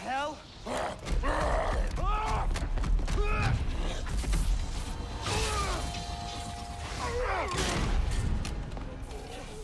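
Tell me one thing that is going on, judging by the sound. Heavy metal blows crash and thud.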